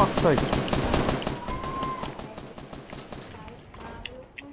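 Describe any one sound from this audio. Wooden walls and ramps clatter rapidly into place in a video game.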